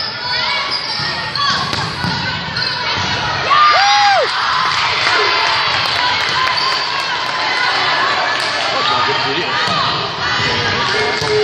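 A volleyball is smacked by hands with sharp thuds.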